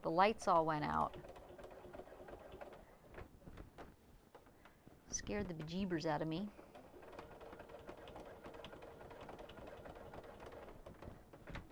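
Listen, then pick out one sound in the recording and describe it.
A sewing machine hums and stitches steadily.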